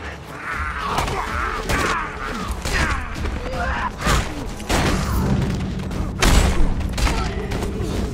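Heavy blows thud against a body again and again.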